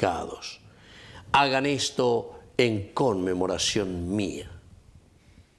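A middle-aged man chants into a microphone in a slow, sung voice.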